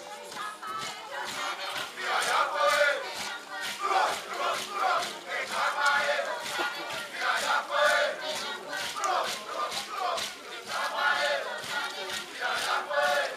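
A group of women sing a lively chant outdoors.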